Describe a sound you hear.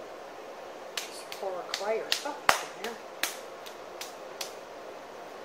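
Hands slap and pat a lump of wet clay.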